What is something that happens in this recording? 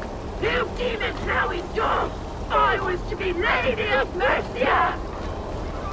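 A man speaks in a deep, gruff voice.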